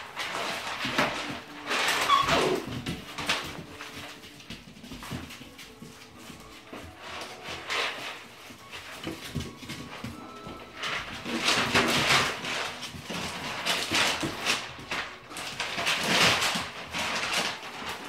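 Puppy paws scrabble and patter on a hard floor.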